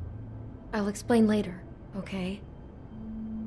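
A woman speaks softly and sadly, close by.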